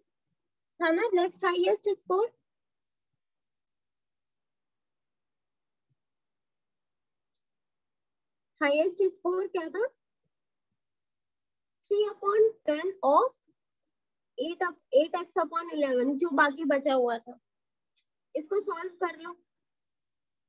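A young woman explains calmly over an online call, in short bursts with pauses.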